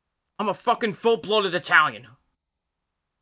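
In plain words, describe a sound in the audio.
A man speaks briefly and casually, close to the microphone.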